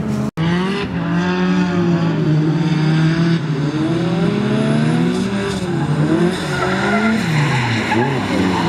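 Car engines roar loudly, revving up and down.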